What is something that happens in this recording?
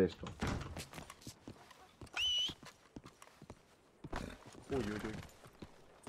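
Boots step on cobblestones.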